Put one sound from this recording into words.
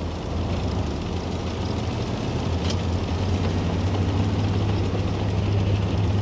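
A tank engine rumbles steadily, low and heavy.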